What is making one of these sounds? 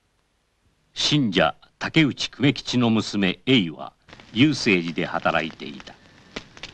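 A woman speaks softly nearby.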